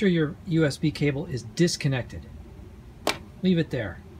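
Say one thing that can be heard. A cable plug clicks into a socket.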